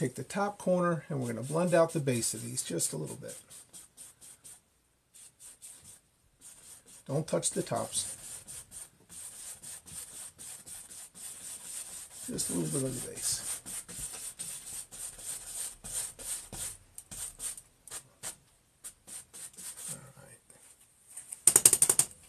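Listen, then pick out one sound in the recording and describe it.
A brush scrubs and dabs softly against a canvas.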